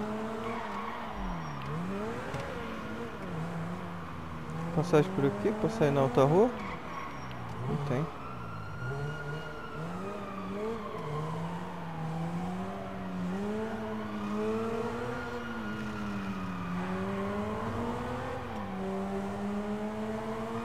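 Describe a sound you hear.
A sports car engine revs and roars, rising and falling in pitch.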